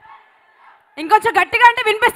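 A woman speaks into a microphone, heard through loudspeakers.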